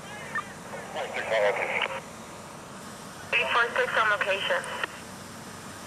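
A man talks loudly in short bursts.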